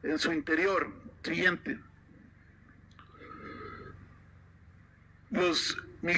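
A man speaks calmly through a microphone and loudspeaker.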